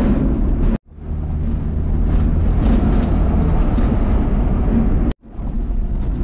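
A heavy truck rumbles past close by.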